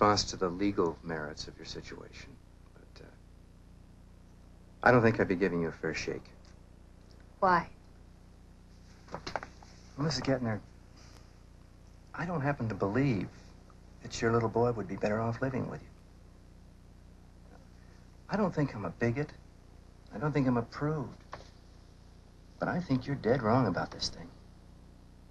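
A middle-aged man speaks calmly and firmly nearby.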